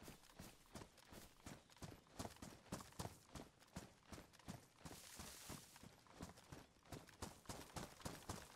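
Footsteps crunch quickly through grass and undergrowth.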